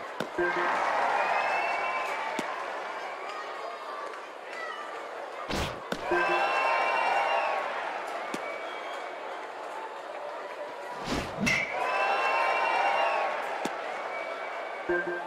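A large crowd cheers and murmurs throughout.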